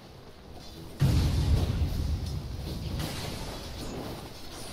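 Loud explosive spell effects burst in a game battle.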